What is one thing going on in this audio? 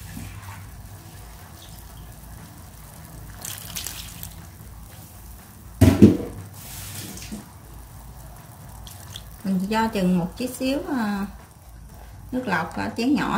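A pot of stew simmers with soft bubbling.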